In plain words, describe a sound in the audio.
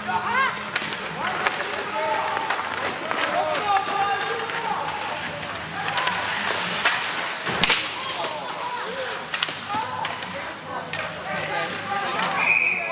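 A crowd of spectators chatters and calls out in a large echoing arena.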